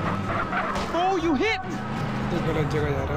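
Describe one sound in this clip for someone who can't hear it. A car crashes into another car with a thud.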